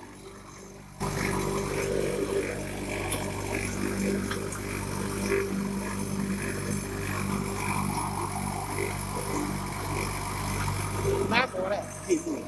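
A machine hums and rattles steadily as it moves along.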